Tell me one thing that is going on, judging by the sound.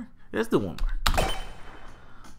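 Electronic blasts and shots burst out in quick succession.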